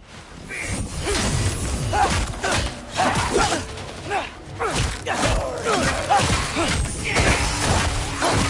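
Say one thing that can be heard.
Weapons strike and smash hard in a fast fight.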